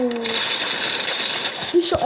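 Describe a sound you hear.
A video game submachine gun fires.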